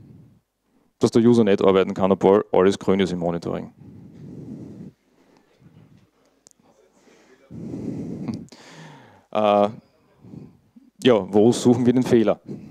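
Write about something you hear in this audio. A man speaks calmly into a microphone over loudspeakers in a large room, pausing now and then.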